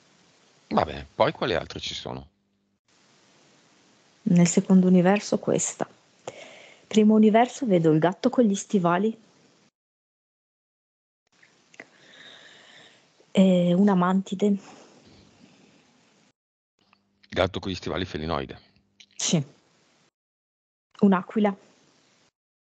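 A man speaks calmly into a headset microphone, with pauses.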